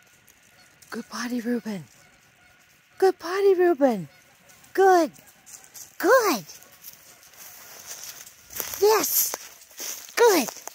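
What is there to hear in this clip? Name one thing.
A puppy whines and yelps in short high cries.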